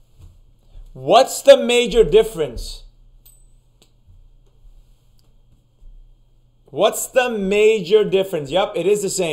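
A man speaks clearly and calmly, close to a microphone.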